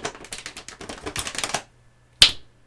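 Plastic noodle packaging crinkles and rustles close by.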